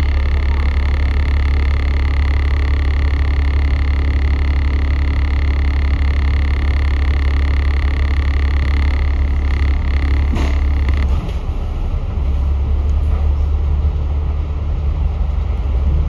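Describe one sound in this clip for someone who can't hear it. A bus engine rumbles steadily close by.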